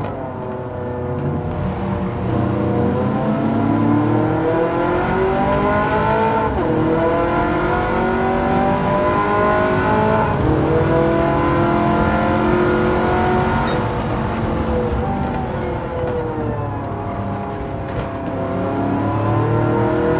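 A car engine roars loudly, rising and falling in pitch as it revs through the gears.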